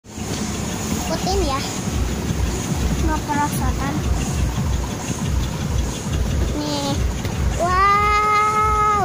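Dull thumps sound as a child bounces on an inflatable.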